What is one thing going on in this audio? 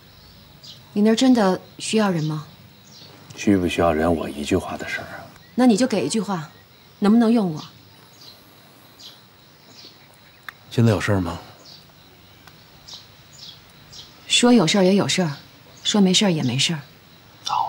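A young woman speaks quietly and earnestly.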